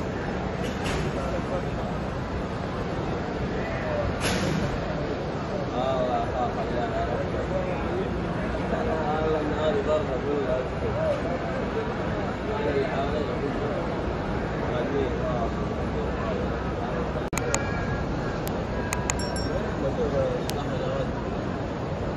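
A large crowd murmurs and calls out in a wide open space.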